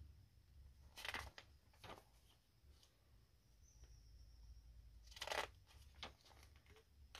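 Paper pages rustle and flip as a catalogue is leafed through.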